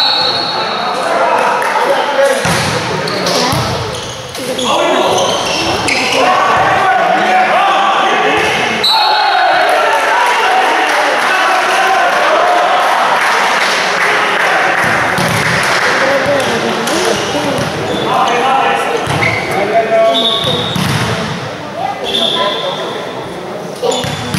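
Squeaking shoes chirp on the court floor.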